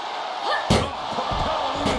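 A heavy blow lands with a loud thud.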